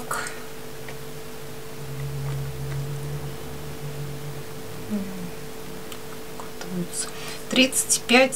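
A chocolate egg is set down on a scale with a light tap.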